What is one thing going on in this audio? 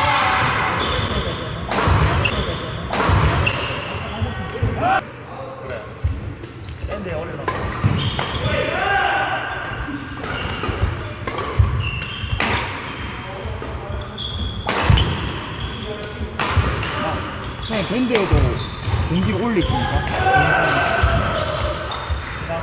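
Young players shout and call out to one another.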